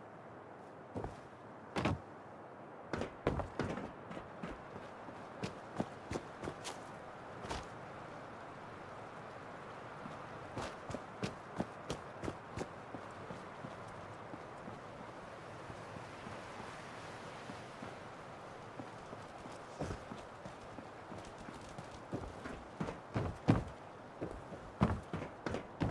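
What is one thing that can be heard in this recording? Footsteps crunch on rough ground and wooden boards.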